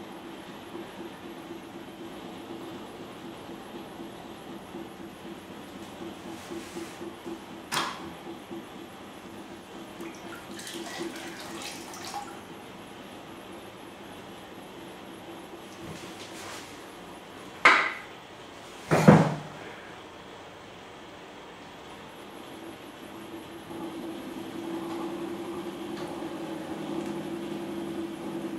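A potter's wheel hums steadily as it turns.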